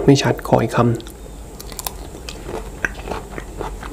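A young man chews moist food with soft, wet clicks close to a microphone.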